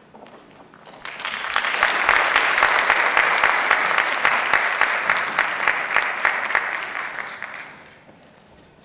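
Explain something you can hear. An audience claps and cheers loudly in a large hall.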